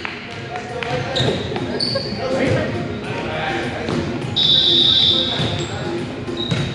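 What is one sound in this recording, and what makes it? Several young men call out and talk in a large echoing gym.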